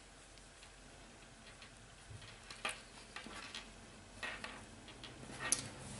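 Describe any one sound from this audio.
Small metal clips click as they are fastened.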